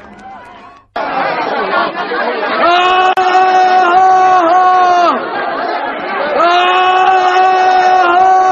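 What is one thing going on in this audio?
A large crowd shouts and cheers excitedly.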